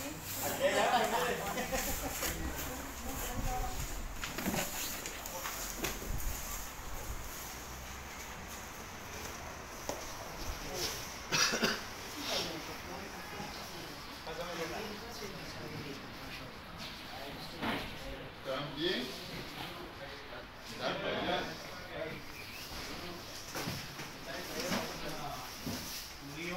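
Men talk nearby in a calm manner.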